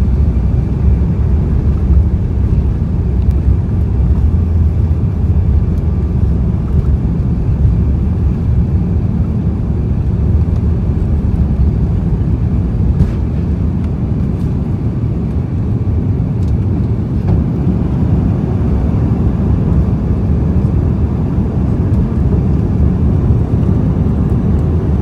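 Jet engines roar steadily as an airliner takes off.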